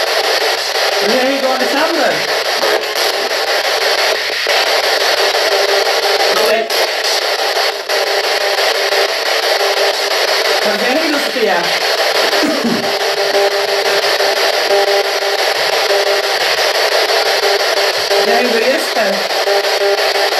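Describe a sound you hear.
Brief warbling voice-like fragments break through radio static.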